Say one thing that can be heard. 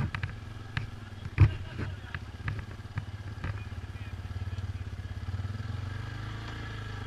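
A dirt bike engine rumbles steadily up close.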